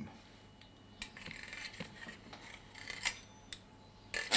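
A pastry wheel rolls and scrapes along dough.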